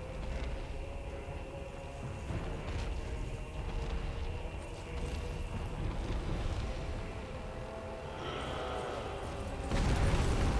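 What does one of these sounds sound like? Lava rumbles and roars with a deep, steady sound.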